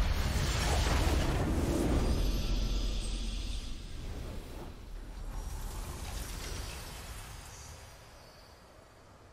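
A triumphant fanfare swells and then fades away.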